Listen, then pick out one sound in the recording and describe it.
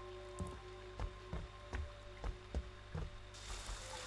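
Heavy footsteps tread slowly.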